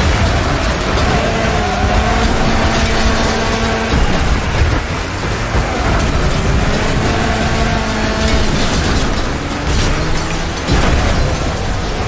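Metal crunches as cars crash into each other.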